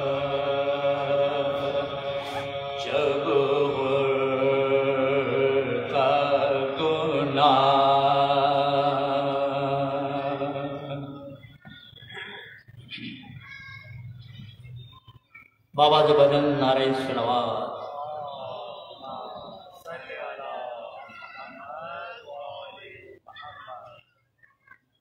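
A man chants a mournful lament into a microphone, close by.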